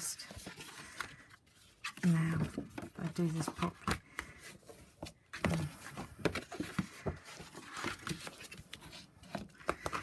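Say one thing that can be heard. A bone folder scrapes along card.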